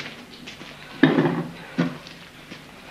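Plates clink against a wooden table.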